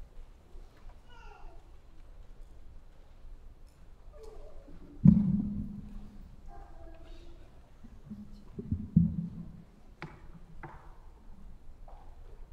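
A middle-aged woman speaks calmly into a microphone in an echoing hall.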